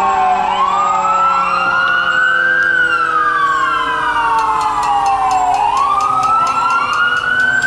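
A car engine hums as the car drives slowly past.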